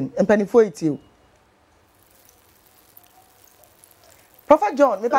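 A woman speaks calmly and clearly into a close microphone, pausing briefly between phrases.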